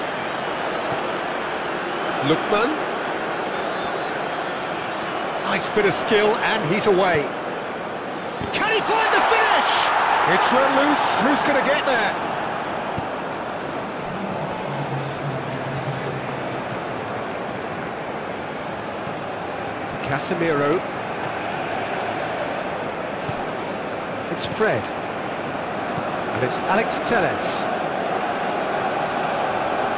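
A large crowd roars steadily in a big stadium.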